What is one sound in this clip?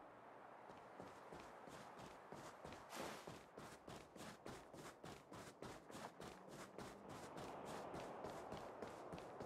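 Quick footsteps run on stone pavement.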